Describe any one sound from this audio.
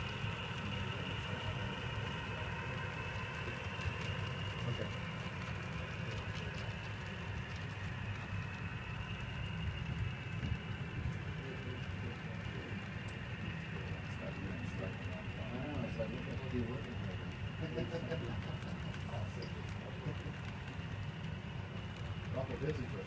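A model train rumbles steadily along the track, its wheels clicking over the rail joints.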